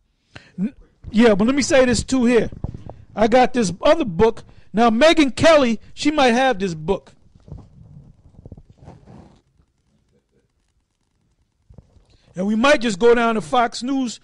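A man speaks into a microphone with emotion, close and clear.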